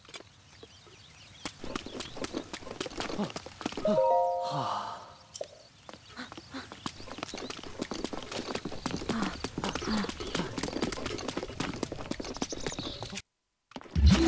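Footsteps patter quickly on stone paving.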